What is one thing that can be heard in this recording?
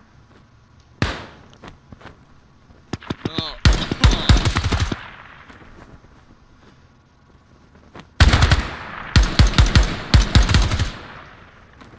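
Rifle shots crack in rapid bursts, echoing across open ground.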